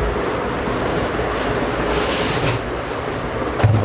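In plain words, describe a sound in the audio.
Foam packing squeaks as it is pulled from a box.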